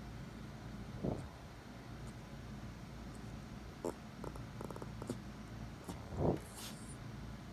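A small dog grunts and snorts like a pig.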